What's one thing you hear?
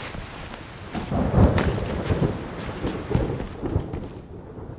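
Footsteps thud on hard ground.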